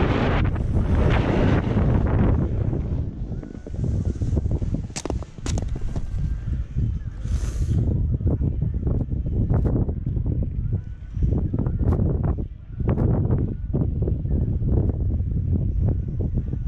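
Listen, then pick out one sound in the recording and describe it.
Wind rumbles and buffets against the microphone.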